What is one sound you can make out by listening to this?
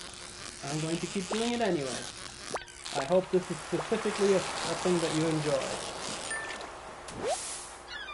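A fishing reel clicks and whirs as a line is wound in.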